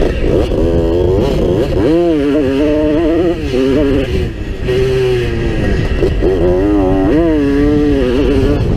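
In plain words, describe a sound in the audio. A motorcycle engine revs loudly up and down close by.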